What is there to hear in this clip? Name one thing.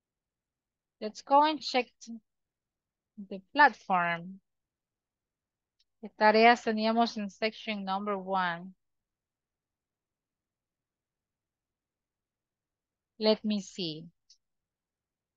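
A young woman speaks calmly over an online call, in short phrases with pauses.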